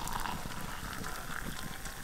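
Water pours into a metal mug.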